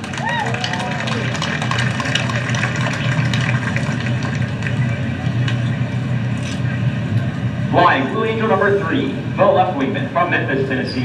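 A jet engine idles with a steady roar and whine.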